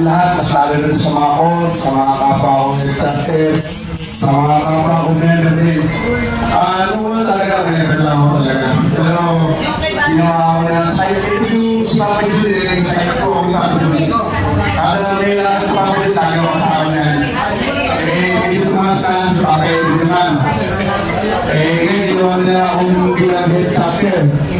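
A middle-aged man sings loudly into a microphone through loudspeakers.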